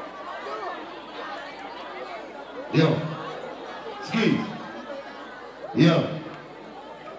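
A crowd chatters loudly outdoors.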